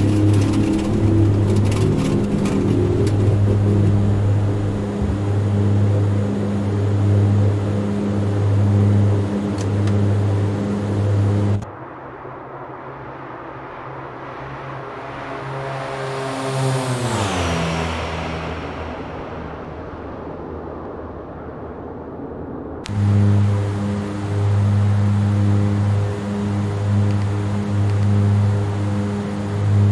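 Propeller engines drone loudly and steadily, heard from inside a cockpit.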